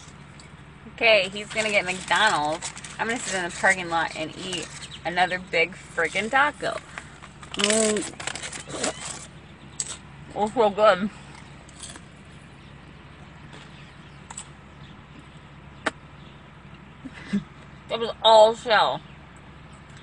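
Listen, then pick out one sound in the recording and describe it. A young woman talks with animation close to a phone microphone.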